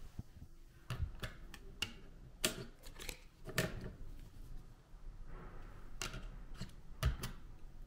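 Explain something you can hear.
A plastic button clicks as a finger presses it.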